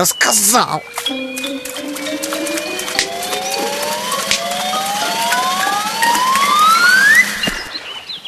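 A stone skips across water with light splashes.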